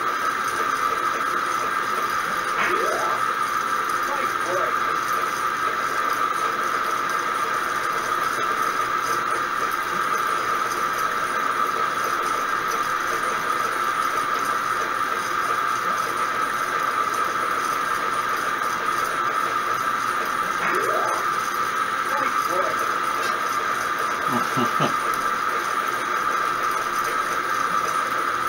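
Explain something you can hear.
A pinball machine gives off a steady, high electronic hum.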